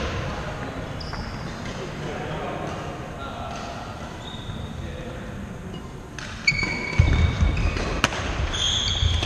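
Sneakers squeak sharply on a wooden court floor.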